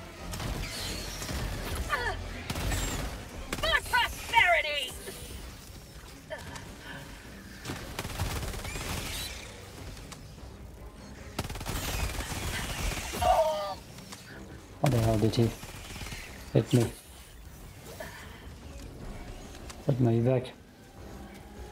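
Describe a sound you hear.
A young man speaks into a close microphone, sometimes with animation.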